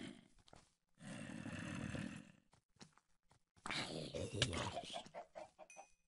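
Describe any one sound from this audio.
A zombie groans close by.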